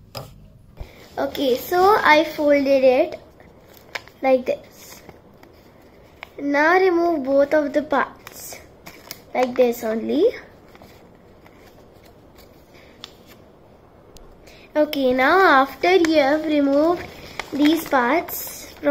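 A young girl speaks calmly, close by.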